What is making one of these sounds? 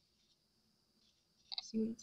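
A plastic stir stick scrapes against a cup.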